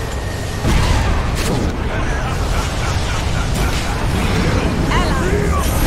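Weapons clash and strike in quick blows.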